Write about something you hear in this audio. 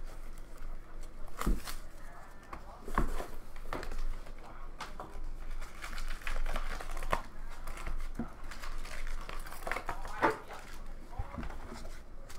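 Cardboard packs crinkle and tear as they are opened.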